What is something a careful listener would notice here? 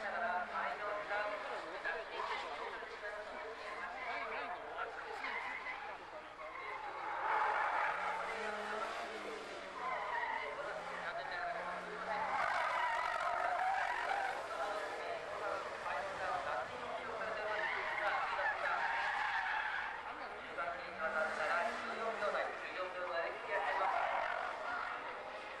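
A car engine revs hard and rises and falls in pitch.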